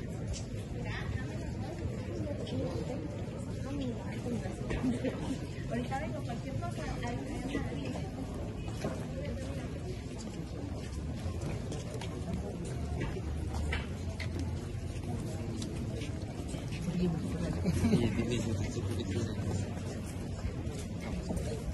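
A crowd of people chatters as it walks by outdoors.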